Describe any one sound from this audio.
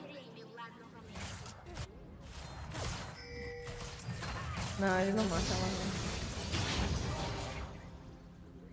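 Video game combat effects clash and whoosh.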